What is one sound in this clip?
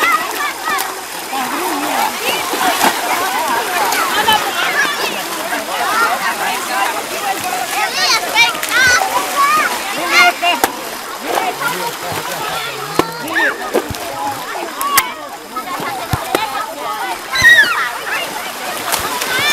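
A crowd of adults and children chatter and shout outdoors.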